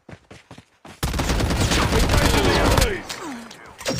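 A rifle fires loudly in a rapid burst.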